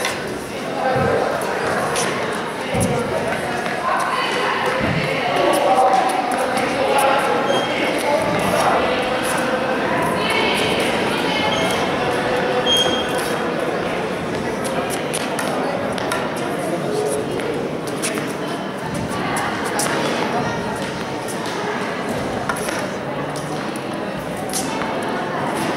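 A tennis ball is struck with a racket, with sharp pops.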